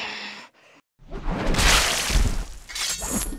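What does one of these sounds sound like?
A body slams down onto a metal floor.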